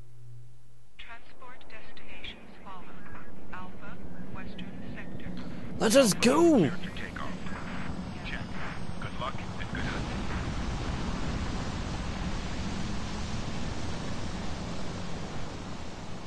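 A large hovering craft hums with a low engine drone.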